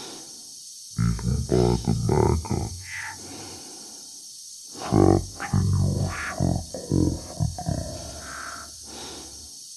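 A man speaks calmly and slowly.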